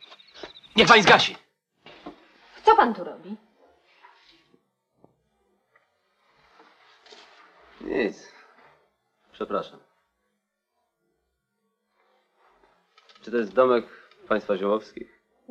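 A middle-aged man speaks in short, calm phrases close by.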